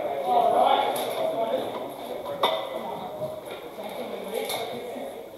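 A crowd of spectators chatters and calls out in an echoing hall.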